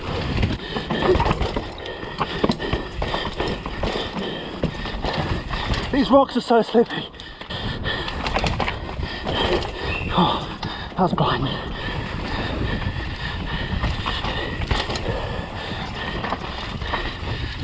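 Bike tyres crunch and rumble over a dirt and rock trail.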